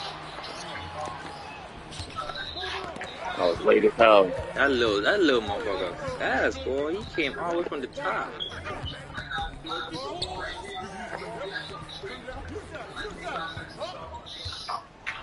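A crowd murmurs in a large arena.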